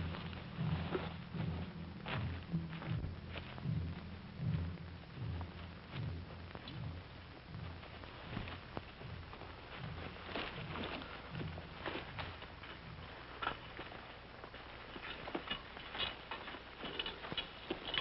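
Men push through dense brush, with leaves and branches rustling and snapping.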